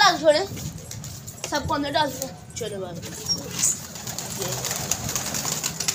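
Pigeons flap their wings.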